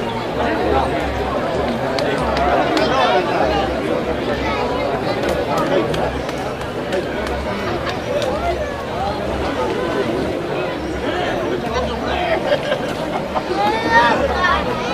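A crowd of young men and spectators shout and call out outdoors.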